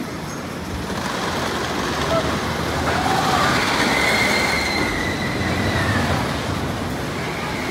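A wooden roller coaster train rumbles along the track.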